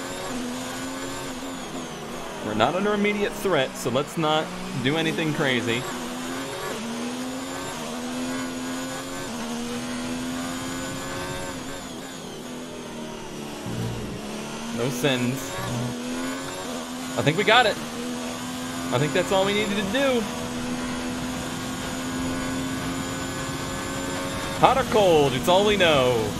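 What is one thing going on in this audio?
A racing car engine whines steadily, rising and falling in pitch.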